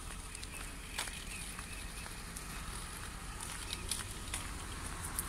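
Footsteps crunch on snowy ground nearby.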